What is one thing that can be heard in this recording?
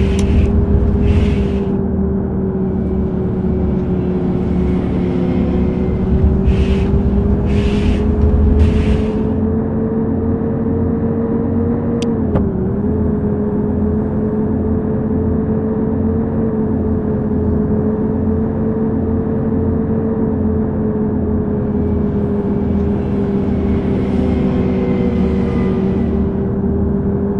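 A bus engine drones steadily, rising and falling slightly in pitch.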